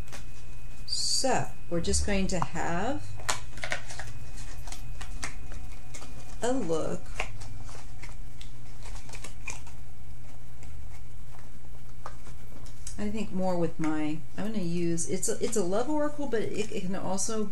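A middle-aged woman talks calmly and close up, through a microphone.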